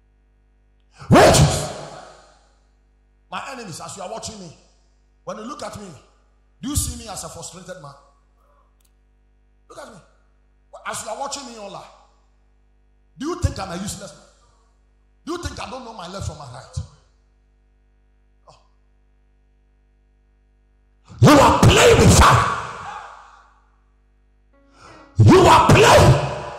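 A man preaches loudly through a microphone, in short bursts with pauses, in a large echoing hall.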